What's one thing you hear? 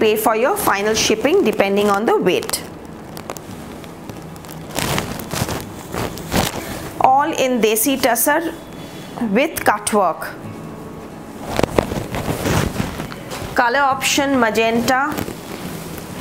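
A woman speaks with animation close to a microphone, in short bursts.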